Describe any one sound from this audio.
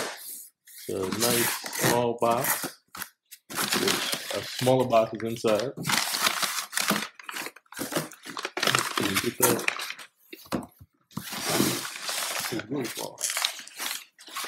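Packing paper crinkles and rustles.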